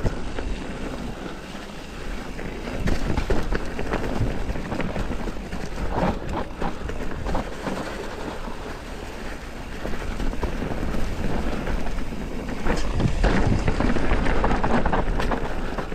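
The bike rattles and clatters over bumps on the trail.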